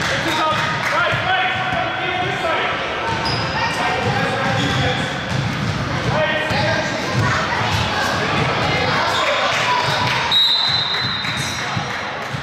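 Basketballs bounce on a wooden floor.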